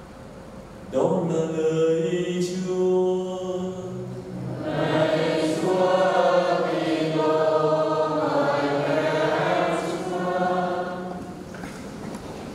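A man chants a prayer through a microphone in an echoing hall.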